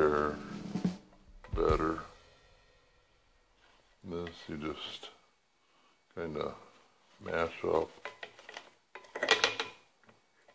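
Bread scrapes against a metal grater.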